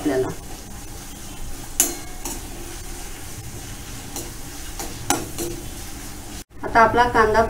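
A metal spatula scrapes and clinks against a wok.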